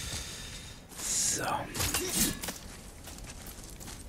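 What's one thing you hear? Feet thud on the ground as a climber drops down from a ledge.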